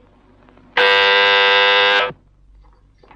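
An electric doorbell rings loudly.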